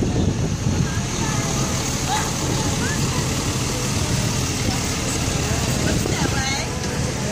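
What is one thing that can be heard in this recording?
Children chatter nearby.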